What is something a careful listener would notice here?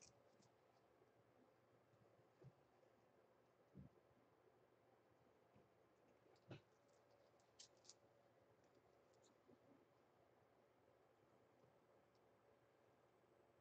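A sponge dabs softly against a canvas.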